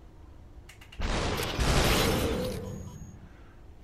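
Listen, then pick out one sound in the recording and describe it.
A figure shatters with a loud, hissing crash.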